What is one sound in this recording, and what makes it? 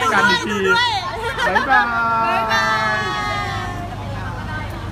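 Young women laugh and cheer excitedly close by.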